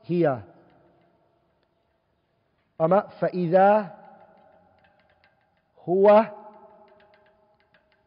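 A man speaks in short, drawn-out phrases, with a ringing echo after each.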